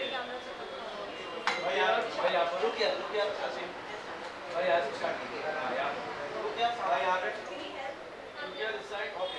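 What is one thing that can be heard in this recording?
Several young men call out and chatter nearby in a lively crowd.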